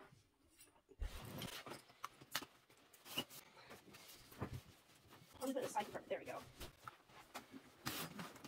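A bag rustles and its contents clatter as they are handled.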